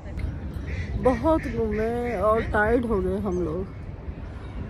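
A middle-aged woman speaks close by, calmly.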